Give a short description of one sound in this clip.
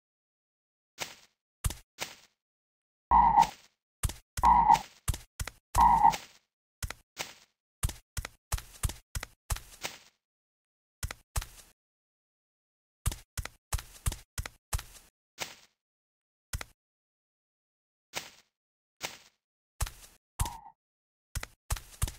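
Short game footsteps and block sounds thud and crunch in quick bursts.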